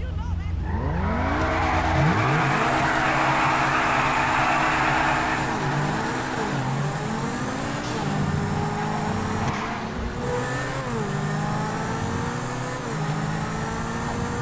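A sports car engine revs hard and roars as it speeds away.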